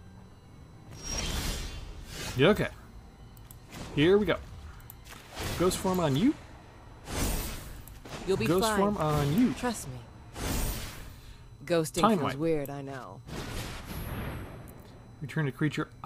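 A game's sound effects chime and swoosh as cards are played.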